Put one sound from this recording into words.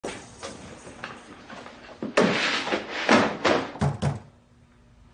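A suitcase's latches click and its lid creaks open.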